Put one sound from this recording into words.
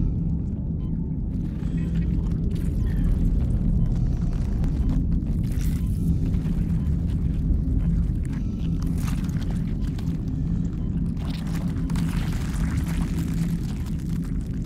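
A deep machine hum drones steadily.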